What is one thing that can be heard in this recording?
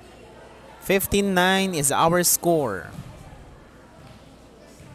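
A volleyball bounces on a wooden floor.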